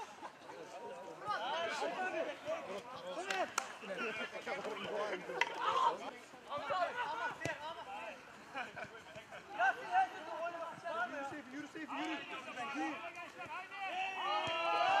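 Young men shout and call out to each other on an outdoor pitch.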